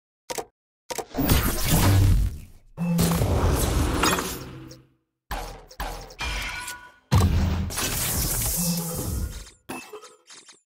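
Game sound effects whoosh and clash in loud bursts.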